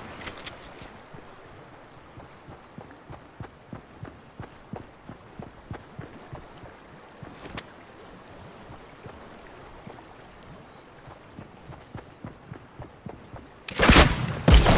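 Footsteps thud quickly and steadily on grass.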